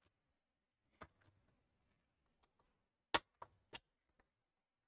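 A plastic laptop panel clicks sharply as it is pressed into place.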